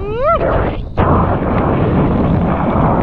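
Water rushes and splashes under a board.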